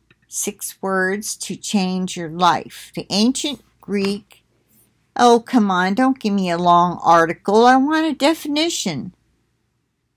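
An elderly woman speaks calmly and closely into a microphone.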